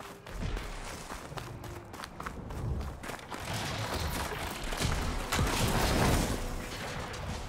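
Footsteps crunch quickly over snow and ice.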